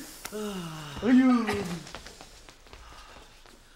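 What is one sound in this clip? Footsteps hurry away across the floor.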